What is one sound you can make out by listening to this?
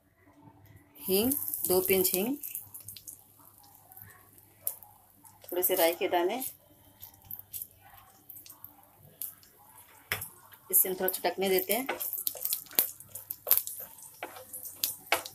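Hot oil sizzles in a pan.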